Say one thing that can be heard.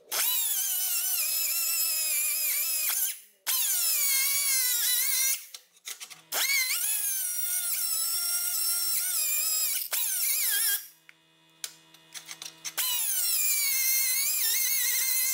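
An angle grinder whines loudly in long bursts, its pitch sagging as it bites into metal and rising again when it eases off.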